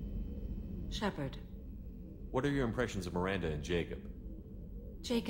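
A man speaks calmly in a deep voice.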